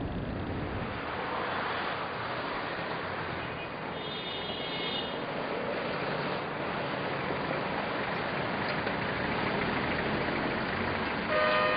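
Traffic passes along a street outdoors.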